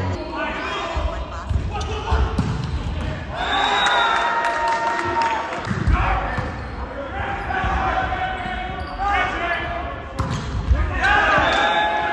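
A volleyball is struck hard with thuds.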